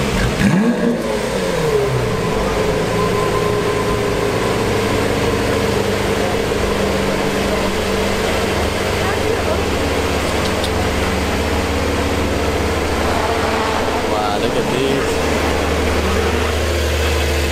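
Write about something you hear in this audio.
A sports car engine rumbles steadily as the car creeps forward.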